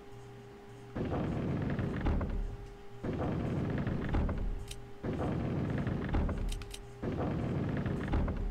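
Heavy wall panels grind and rumble as they turn.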